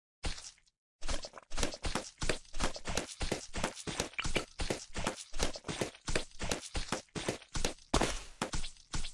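Cartoon balloons pop in quick succession.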